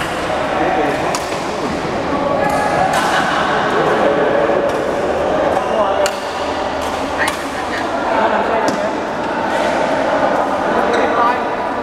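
Several men talk and call out across a large echoing hall.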